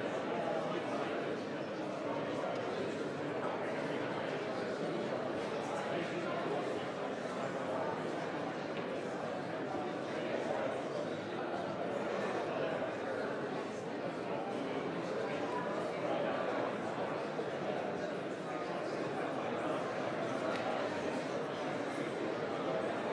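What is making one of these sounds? Many men and women murmur and chatter at once in a large room.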